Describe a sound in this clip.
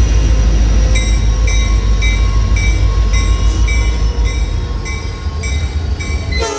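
Train wheels clack rhythmically over the rail joints.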